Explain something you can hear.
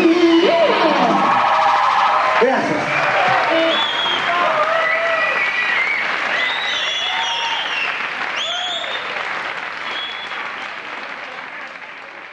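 A rock band plays loudly live in an echoing hall, slowly fading.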